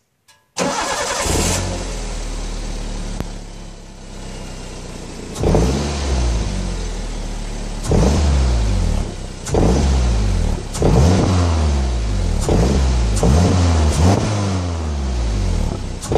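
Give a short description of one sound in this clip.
A car engine rumbles through its exhaust close by, revving up sharply and falling back again and again.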